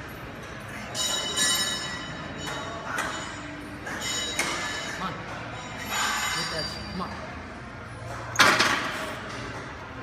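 A man grunts and strains loudly with effort, close by.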